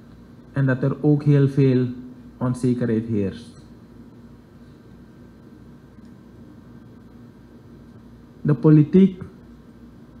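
A young man speaks calmly into a microphone, with long pauses.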